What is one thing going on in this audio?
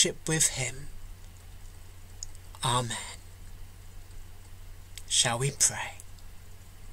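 A middle-aged man speaks calmly in short phrases through an online call microphone.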